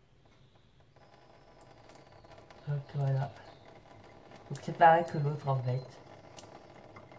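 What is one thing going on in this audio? Water trickles and drips into a sink.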